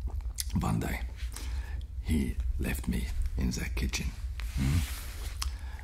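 A man speaks calmly and closely into a microphone.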